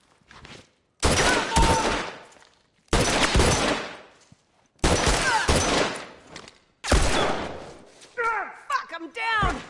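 Loud rifle shots ring out one after another, each followed by a ringing echo.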